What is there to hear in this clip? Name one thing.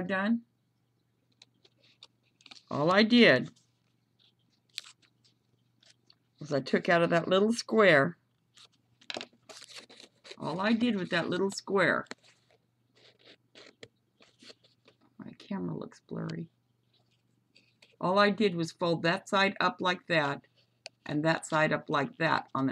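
Paper rustles and crinkles softly as it is folded by hand.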